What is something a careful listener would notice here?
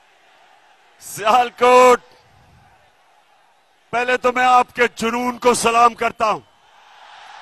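A man speaks forcefully into a microphone over loudspeakers.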